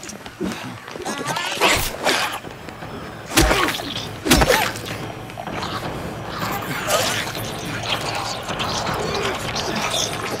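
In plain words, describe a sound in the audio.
A creature groans and snarls close by.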